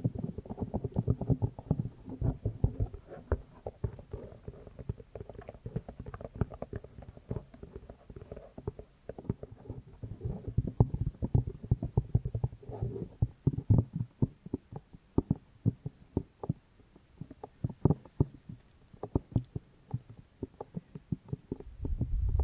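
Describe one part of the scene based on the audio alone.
A young woman whispers softly into a microphone.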